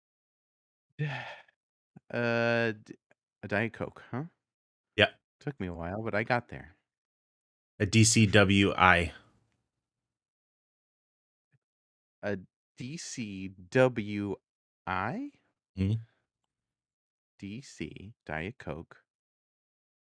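A man talks casually into a close microphone, with pauses.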